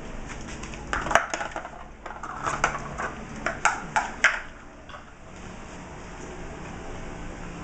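A dog's claws scrape on a wooden chair.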